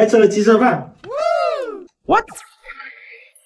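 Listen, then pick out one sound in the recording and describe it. A cartoon sound effect boings with a rising and falling pitch.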